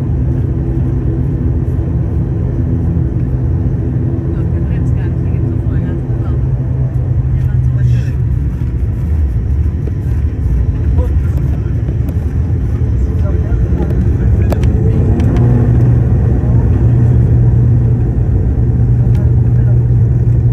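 Plane wheels rumble along a runway.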